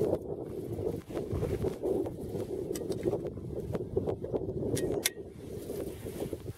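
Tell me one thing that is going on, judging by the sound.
Wind blows steadily across open ground outdoors.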